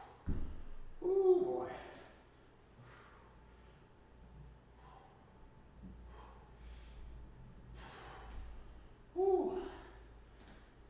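A man grunts with strain.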